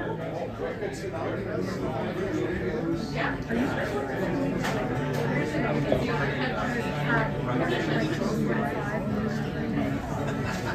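An acoustic guitar is strummed and picked.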